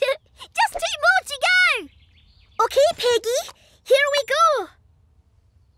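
A high, childlike cartoon voice speaks with animation, close to the microphone.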